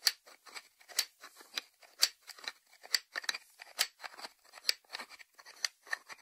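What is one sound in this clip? Fingertips tap on a ceramic lid.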